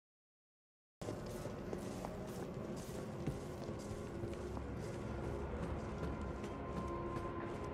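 Footsteps thud quickly on hard ground and metal stairs.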